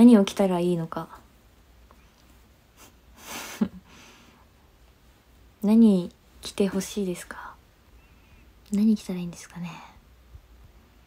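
A young woman talks casually and close to a microphone, in short bursts.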